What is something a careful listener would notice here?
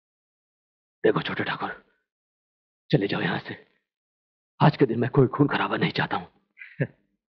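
A middle-aged man speaks earnestly, close by.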